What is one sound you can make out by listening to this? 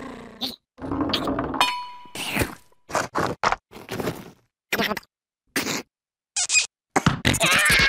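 A cartoon creature mumbles and grunts in a squeaky voice.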